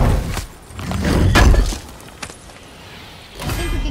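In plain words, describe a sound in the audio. A heavy metal weapon strikes with a loud, booming impact.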